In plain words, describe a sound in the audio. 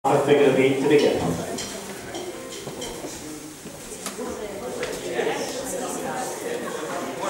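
Many feet shuffle and step on a wooden floor.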